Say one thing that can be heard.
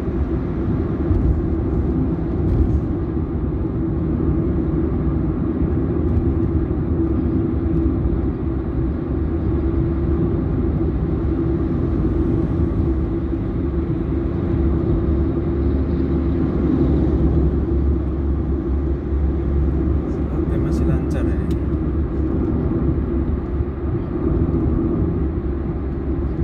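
Tyres roll over the road with a steady low rumble.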